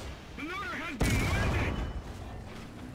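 A tank cannon fires with a loud, sudden boom.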